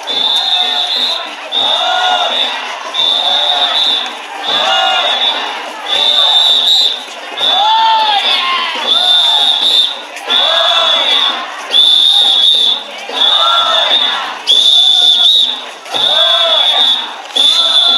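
A group of children chant loudly together in a steady repeating rhythm.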